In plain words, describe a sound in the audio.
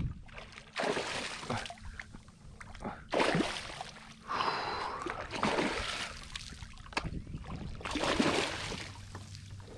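Water splashes as a landing net is dunked and swished.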